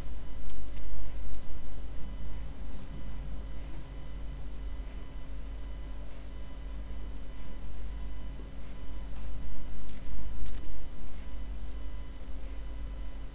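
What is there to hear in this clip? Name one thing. A man speaks calmly through a headset microphone.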